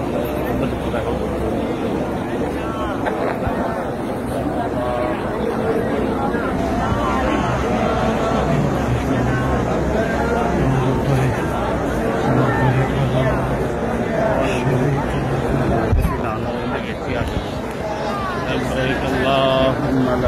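A large crowd of men murmurs and chants all around, in a loud, echoing open space.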